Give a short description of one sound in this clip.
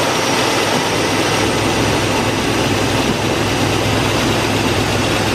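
A car engine idles loudly and steadily close by.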